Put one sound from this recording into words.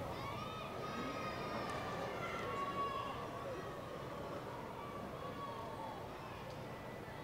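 A crowd calls out and cheers at a distance.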